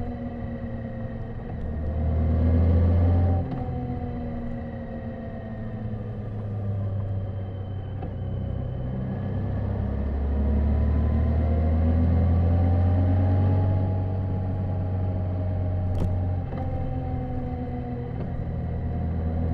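A motorcycle engine hums steadily and rises and falls in pitch as the bike speeds up and slows down.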